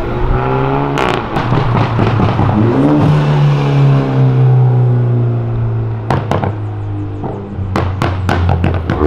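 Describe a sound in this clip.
A sports car's exhaust pops and crackles sharply.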